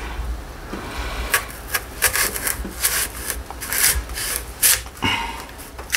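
A knife slices through a melon with crisp cuts.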